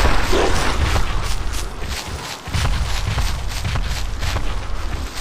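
Clawed feet patter quickly over snow.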